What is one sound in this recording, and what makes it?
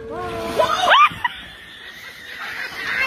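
A person splashes into water.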